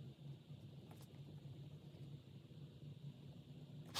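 A marker squeaks and scratches softly across paper.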